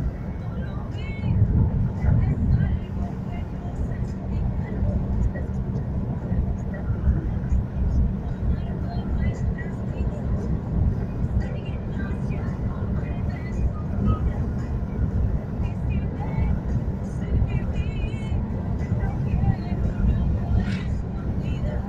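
Tyres rumble steadily on the road surface.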